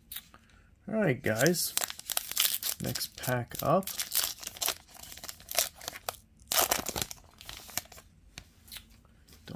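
Cardboard cards rustle and scrape as they are shuffled by hand.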